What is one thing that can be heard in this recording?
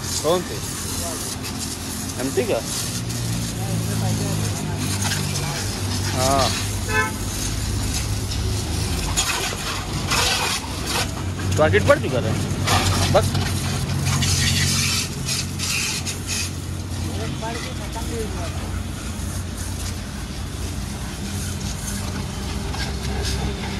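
A pressure washer sprays water hard against a motorcycle.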